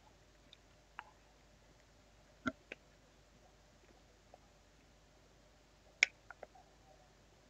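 Sprue cutters snip plastic parts with sharp clicks.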